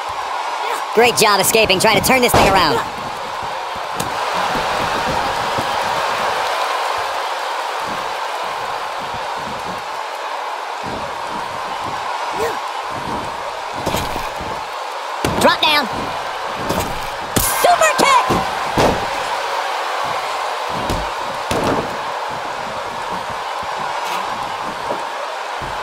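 Bodies slam down onto a wrestling mat with heavy thuds.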